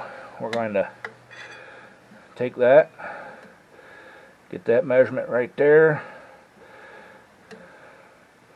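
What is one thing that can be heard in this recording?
A small engine's flywheel clicks faintly as a hand turns it.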